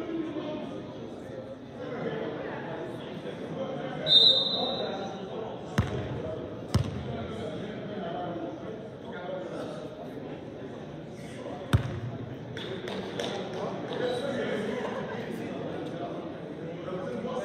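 Several young people talk and call out in a large echoing hall.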